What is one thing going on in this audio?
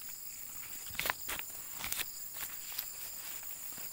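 Pineapples knock and rustle softly as they are handled.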